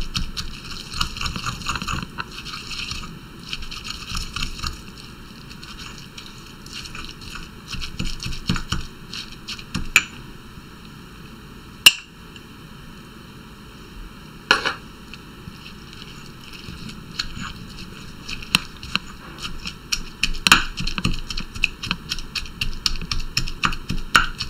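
A stone pestle grinds and pounds in a stone mortar in quick rhythmic strokes.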